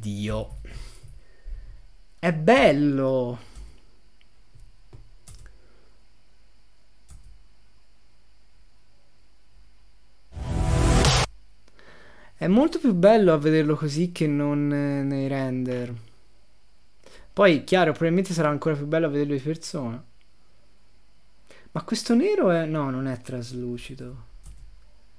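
A young man talks with animation into a nearby microphone, in bursts with pauses.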